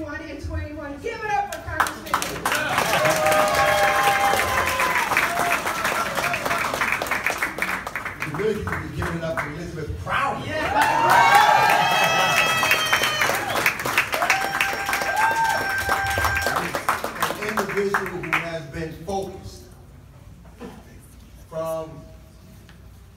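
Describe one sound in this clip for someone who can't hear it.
A man speaks to a crowd.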